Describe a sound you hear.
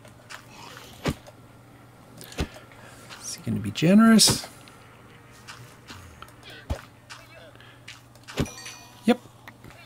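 Punches land on a creature with dull thuds.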